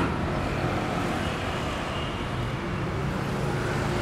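A bus engine drones as the bus drives past.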